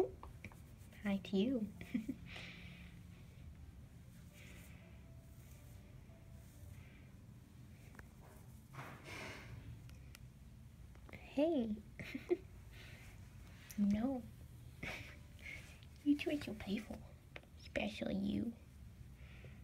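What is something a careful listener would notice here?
A cat meows softly now and then.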